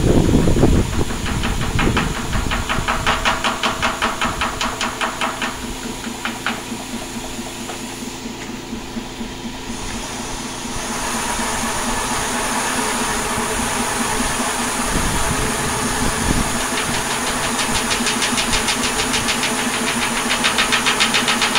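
A machine's spinning wheel whirs steadily nearby.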